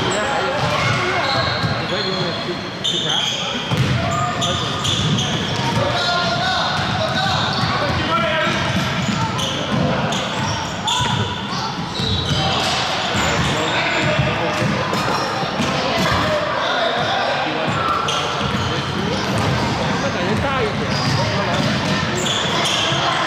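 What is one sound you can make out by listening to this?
Children shout and call out to each other across the court.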